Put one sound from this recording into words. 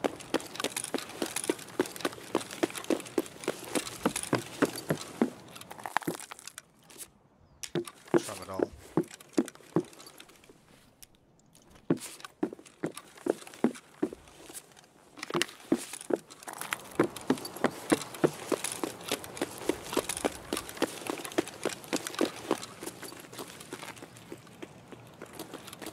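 Footsteps tread steadily on a hard path.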